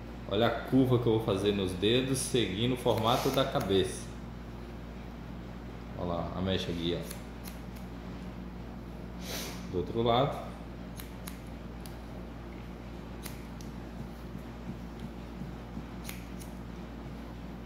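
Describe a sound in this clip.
Scissors snip sharply through hair.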